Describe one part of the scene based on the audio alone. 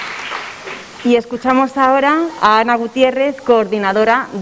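A woman sings into a microphone in a large hall.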